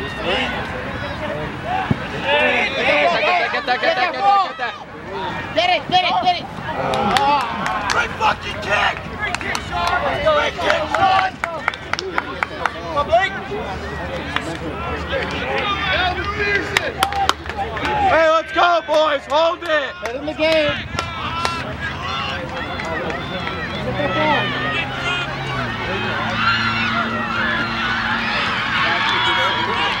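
Men and women chatter close by outdoors.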